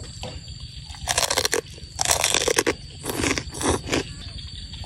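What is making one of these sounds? A woman chews crunchy food noisily, close to the microphone.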